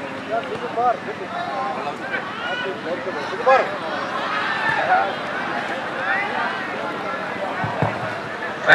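A large outdoor crowd shouts and cheers throughout.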